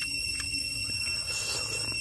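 A man bites into a crunchy egg.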